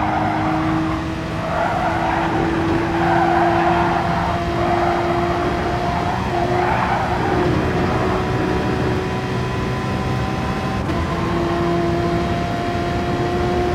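A racing car engine whines at high revs throughout, shifting gears now and then.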